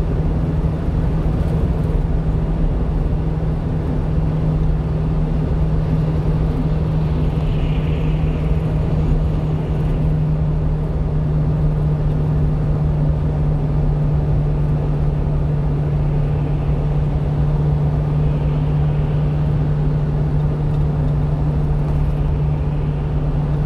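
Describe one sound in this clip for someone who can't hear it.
Tyres roar on a highway.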